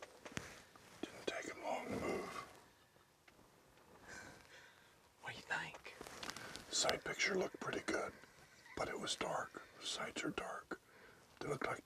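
An elderly man speaks softly and close by, in a quiet, hushed voice.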